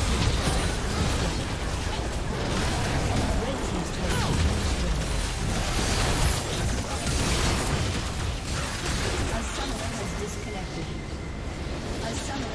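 Game combat sounds clash and burst in quick succession.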